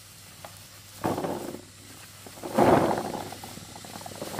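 Small fruits tumble and clatter into a plastic basin.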